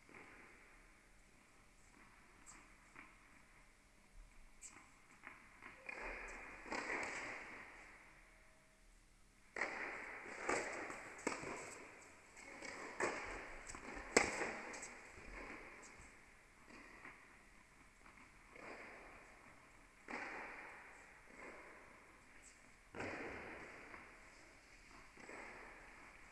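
Shoes squeak and patter on a hard court.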